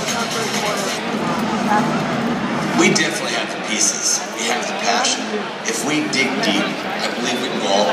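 A man speaks through a loudspeaker with echo.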